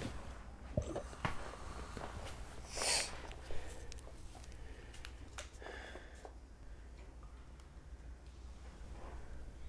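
A man breathes heavily close by.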